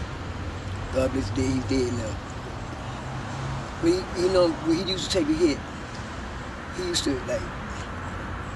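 An elderly man speaks in a low, tense voice close by.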